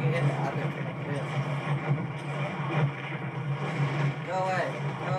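Game sounds play through a loudspeaker.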